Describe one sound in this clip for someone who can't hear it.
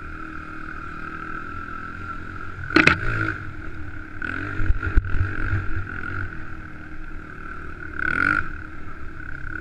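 A dirt bike engine drones steadily and revs up in bursts.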